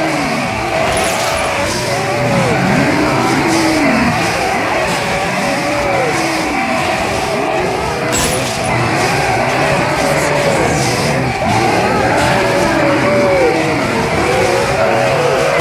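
Blades slash and strike flesh in quick hits.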